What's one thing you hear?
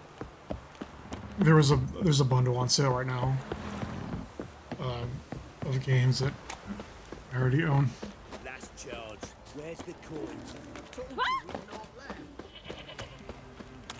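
Footsteps thud quickly on wooden boards.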